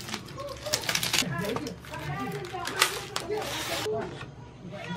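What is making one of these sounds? Sheets of paper rustle and crinkle as they are handled.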